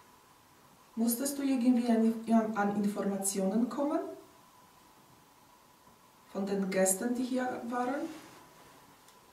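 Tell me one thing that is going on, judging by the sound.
A woman speaks up nearby in short bursts.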